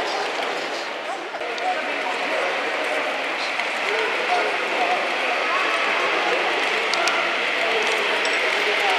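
A crowd of adult men and women chatters in the background of a large echoing hall.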